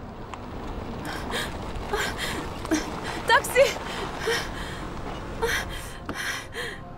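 A young woman calls out loudly to a car.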